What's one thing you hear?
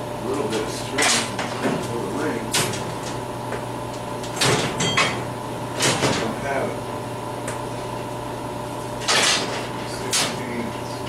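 Metal scrapes and rasps in short, harsh bursts nearby.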